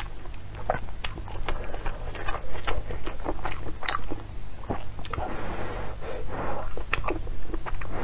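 A young woman blows on hot noodles close to a microphone.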